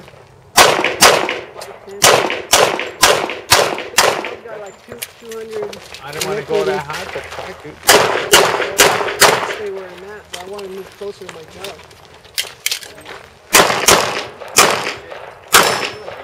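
A pistol fires loud sharp shots in quick bursts outdoors.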